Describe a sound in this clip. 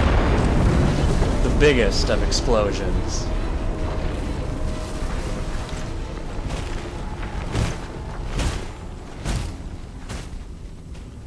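A large explosion booms and rumbles, then slowly dies away.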